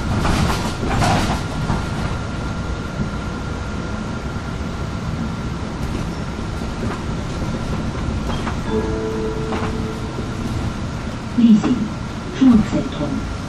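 A bus engine rumbles steadily as the bus drives along a street.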